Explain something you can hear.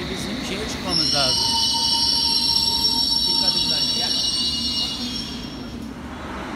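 A train's brakes squeal loudly in a large echoing hall.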